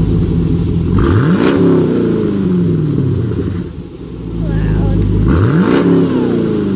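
A car engine revs sharply and falls back several times.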